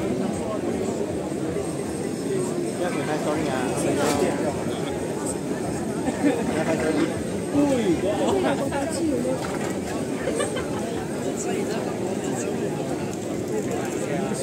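A large outdoor crowd murmurs and chatters throughout.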